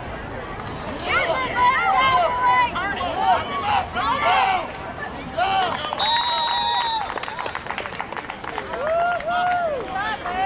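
A spectator shouts and cheers close by.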